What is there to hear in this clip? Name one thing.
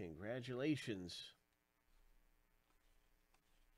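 Glossy cards slide and rustle against each other.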